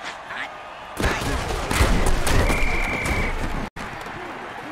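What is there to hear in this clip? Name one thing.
Armoured players crash into each other with heavy thuds.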